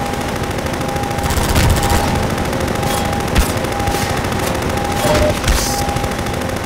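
A gun fires in short bursts with sharp cracks.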